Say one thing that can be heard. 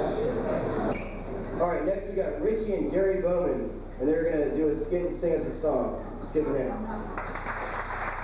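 A young man speaks loudly through a microphone in an echoing room.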